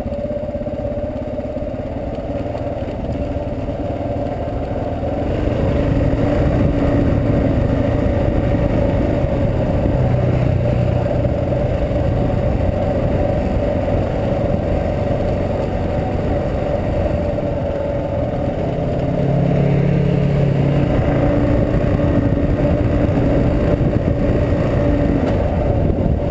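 A motorcycle engine hums steadily, rising and falling in pitch as it rides.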